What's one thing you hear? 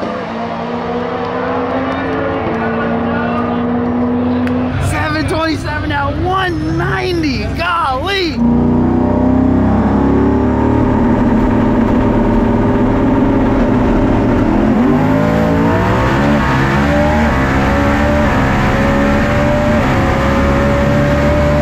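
A drag racing car engine rumbles loudly and steadily.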